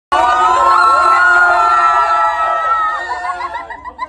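A crowd of young men and women scream and cheer excitedly nearby.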